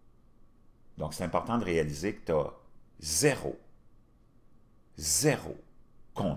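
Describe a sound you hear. A middle-aged man speaks with animation into a close microphone, in short bursts.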